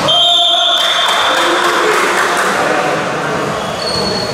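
Young men cheer loudly together.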